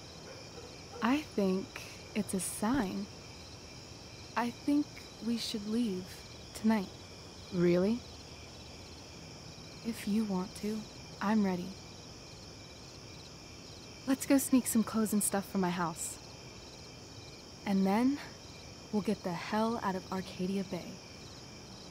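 A young woman speaks with animation, heard close.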